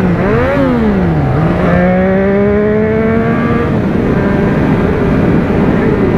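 A parallel-twin motorcycle accelerates through the gears, then eases off the throttle.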